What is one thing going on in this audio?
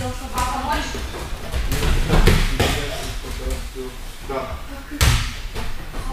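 A child lands with thuds on a padded mat.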